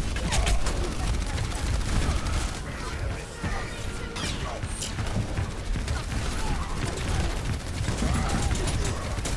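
Game weapons fire and explode in rapid bursts.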